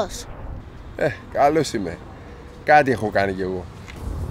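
A man answers calmly up close.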